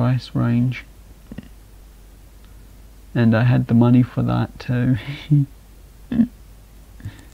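A young man talks casually and with animation into a close microphone.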